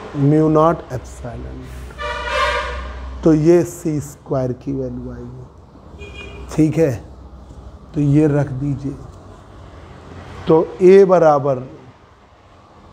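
A man explains calmly, close by.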